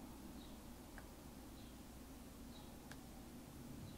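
A pen tip taps lightly on paper.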